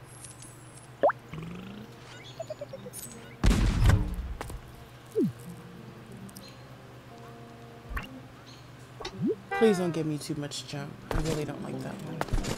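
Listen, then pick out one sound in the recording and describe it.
Cartoon sound effects pop and whoosh.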